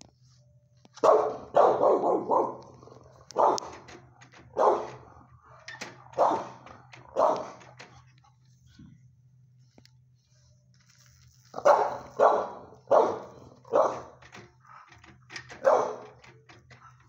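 A dog barks loudly and repeatedly close by in an echoing room.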